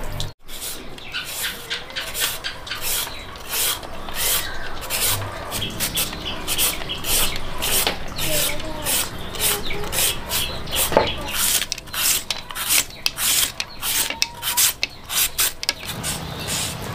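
A grater scrapes rhythmically through a carrot.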